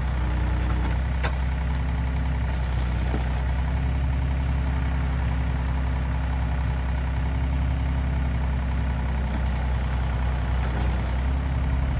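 An excavator bucket scrapes and knocks against soil and roots.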